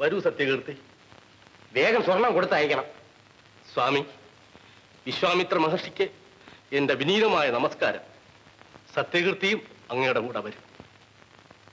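A man speaks with emotion, pleading.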